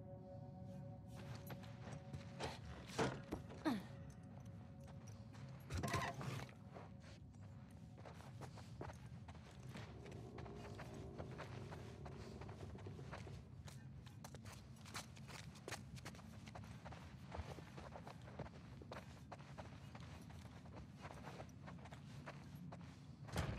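Footsteps tread slowly across a floor indoors.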